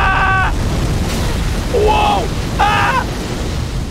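A large fire roars and whooshes.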